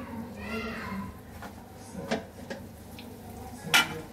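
A metal lid clatters as it is lifted off a pan.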